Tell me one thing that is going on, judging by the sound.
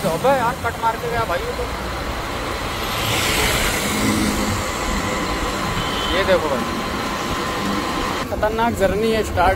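A motorbike engine hums steadily while riding along a road.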